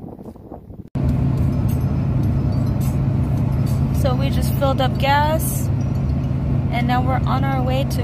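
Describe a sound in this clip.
A car engine hums steadily with road rumble from inside a moving car.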